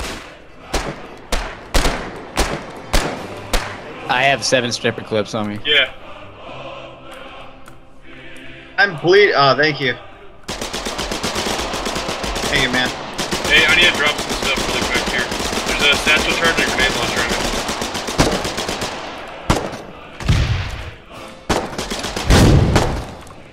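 Rapid gunshots fire in short bursts.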